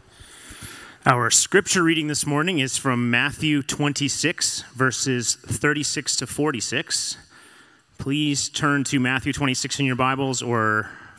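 A man speaks calmly through a microphone, reading out.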